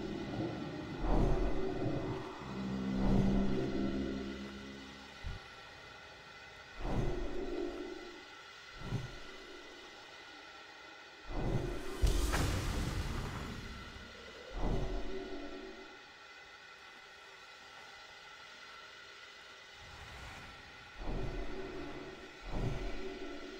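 Magic spells whoosh and boom in bursts during a fantasy battle.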